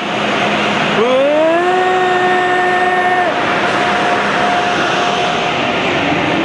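A locomotive whines loudly as it passes.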